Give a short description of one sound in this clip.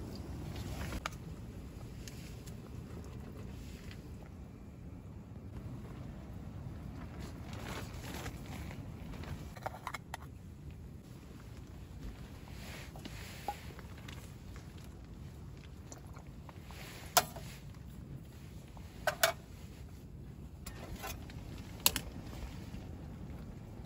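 Water bubbles at a boil in a pot.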